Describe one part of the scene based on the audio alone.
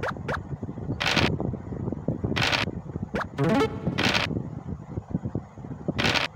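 Dice rattle briefly, several times.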